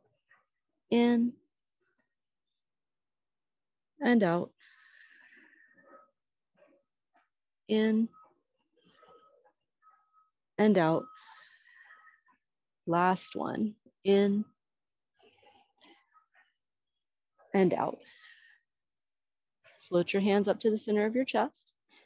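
A woman calls out short words in a lively voice, pausing between them.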